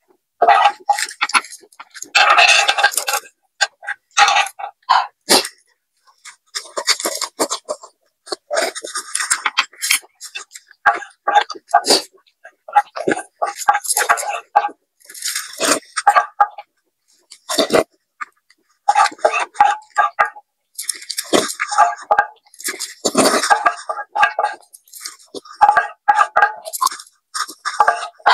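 A young woman chews and slurps food close up.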